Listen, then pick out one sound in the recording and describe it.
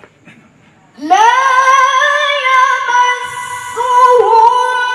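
A young woman chants a recitation loudly through a microphone, with a ringing echo.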